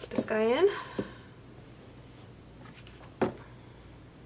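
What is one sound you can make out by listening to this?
A plastic makeup palette knocks lightly against a tabletop.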